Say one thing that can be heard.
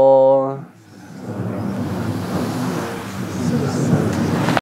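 A group of men murmur softly together.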